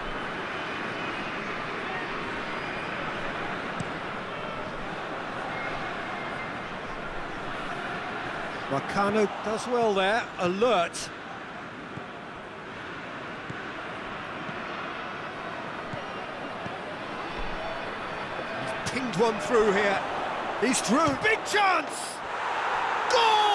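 A large crowd murmurs and chants steadily in a stadium.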